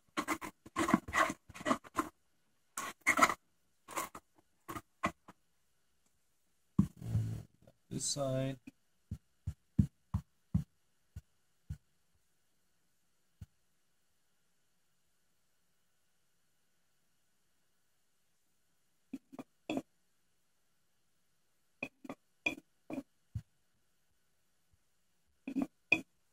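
Hands rub and scrub a small metal plate with a rag.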